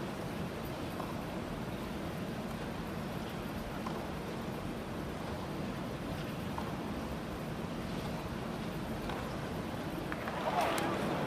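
A tennis ball is struck back and forth with sharp pops, heard from a distance.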